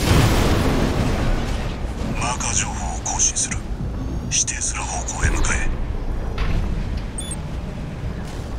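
A jet thruster roars with a deep, steady rumble.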